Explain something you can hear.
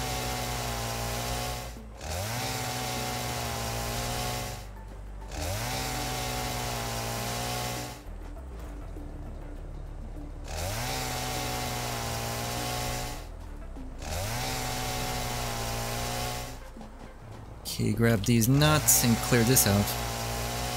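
A chainsaw engine drones steadily and revs up again and again.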